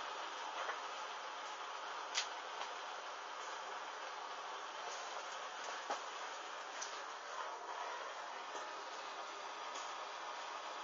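Synthetic fabric crackles faintly as it burns with a small flame.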